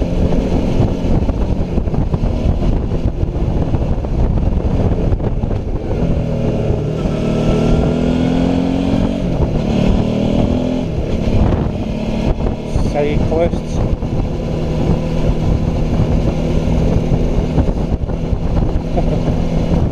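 A motorcycle engine hums steadily, rising and falling in pitch as it rides along.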